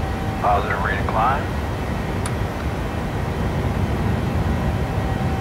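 A jet engine roars steadily with a low rumble.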